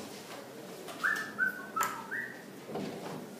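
A marker squeaks against a whiteboard in short strokes.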